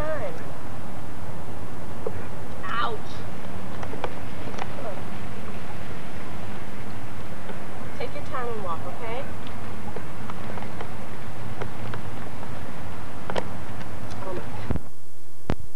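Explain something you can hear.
A woman talks softly and encouragingly to a baby close by.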